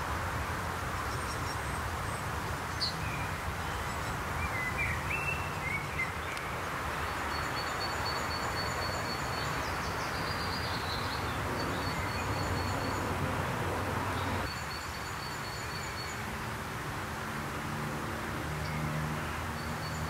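Small birds chirp nearby.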